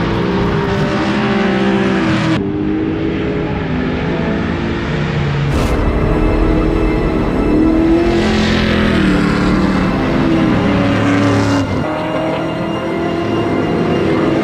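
Tyres squeal and screech on pavement.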